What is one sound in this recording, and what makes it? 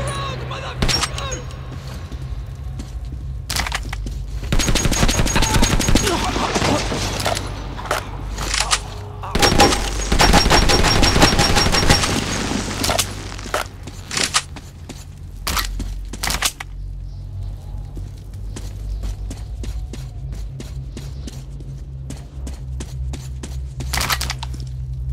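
Rifle shots crack sharply now and then.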